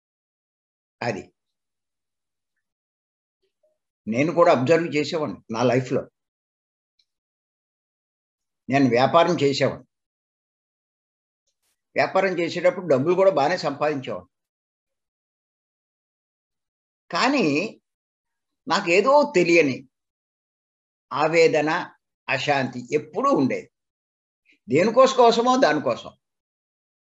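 An elderly man speaks calmly in short bursts with pauses, heard through an online call.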